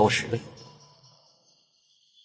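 A young man speaks in a low voice, close by.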